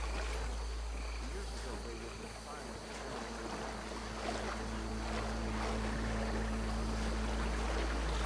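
A man wades through shallow water with soft splashes.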